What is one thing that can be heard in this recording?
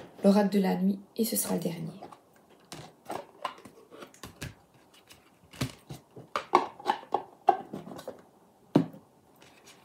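Cardboard card boxes tap and rustle in hands.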